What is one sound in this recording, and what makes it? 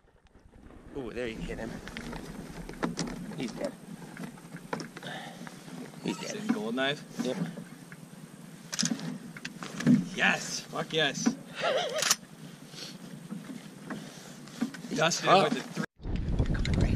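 Geese honk on the water.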